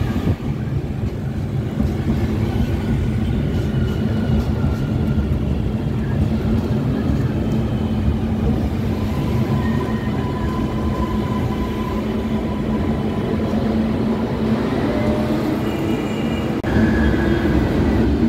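Traffic hums on a street below.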